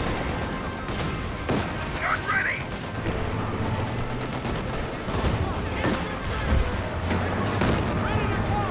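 Explosions boom and crack.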